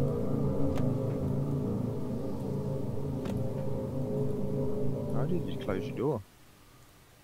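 A truck engine rumbles steadily up close.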